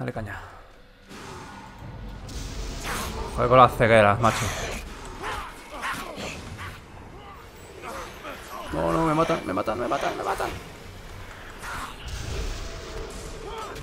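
Magic spells burst and crackle during a fight.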